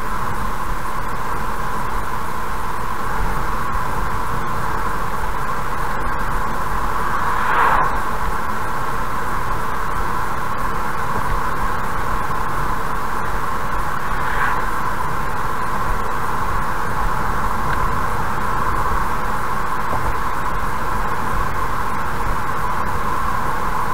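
A car drives steadily along a highway, its tyres humming on the road.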